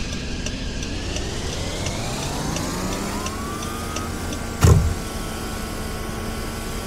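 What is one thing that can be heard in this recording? A car engine revs up, rising in pitch, then holds steady as the car pulls away.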